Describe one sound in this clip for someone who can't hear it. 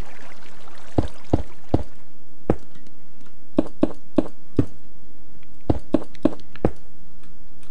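Stone blocks are placed with short, dull thuds.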